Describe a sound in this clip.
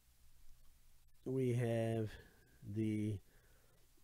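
A plastic card holder clicks and rubs between fingers.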